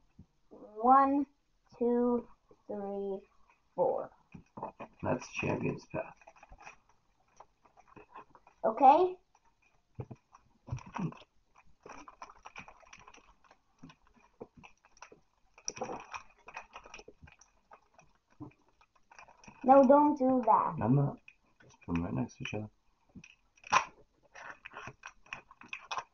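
Playing cards rustle and tap as hands handle them.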